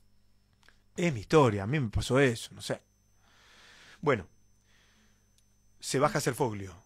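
A man speaks with animation, close into a microphone.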